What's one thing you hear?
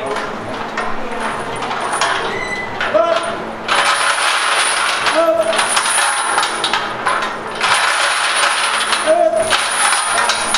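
A man strains under a heavy barbell squat.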